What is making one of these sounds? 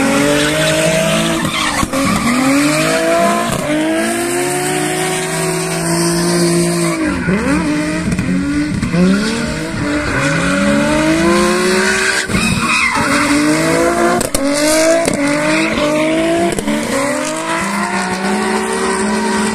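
Car engines rev hard, rising and falling again and again.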